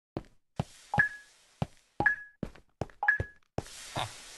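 Short high beeps sound once a second as a countdown.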